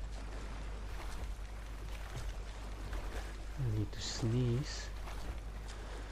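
Water splashes as someone wades through a river.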